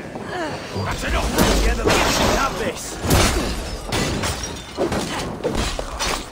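Blades and shields clash in a fight.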